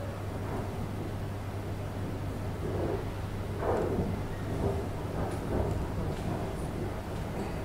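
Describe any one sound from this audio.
Metal hair clips click shut.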